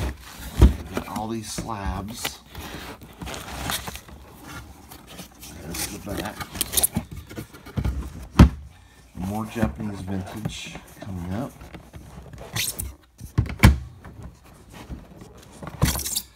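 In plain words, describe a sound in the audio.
Foam packing rustles as a lid is lifted.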